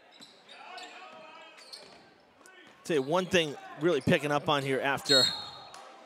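A basketball bounces on a wooden floor as a player dribbles.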